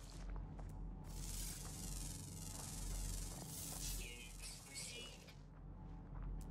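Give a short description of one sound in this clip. An electronic scanner whirs with a rising, shimmering hiss.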